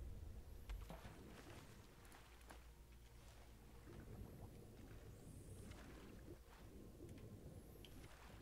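Water sloshes around a swimmer.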